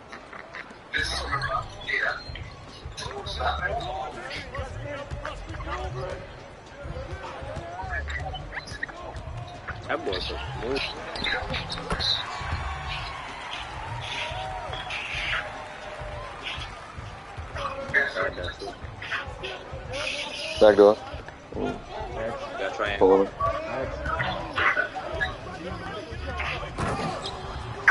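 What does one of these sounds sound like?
A basketball bounces on a hard court in quick, steady dribbles.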